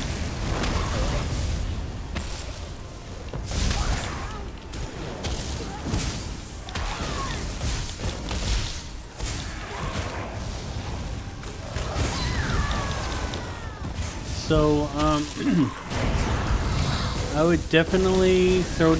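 Blows and magic impacts thud and clash repeatedly.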